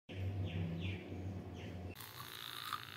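An electric toothbrush buzzes steadily.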